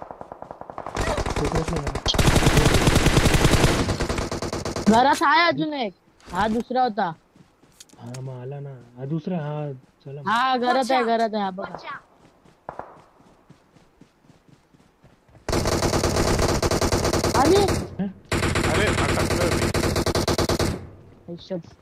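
Rapid gunfire rattles in a game.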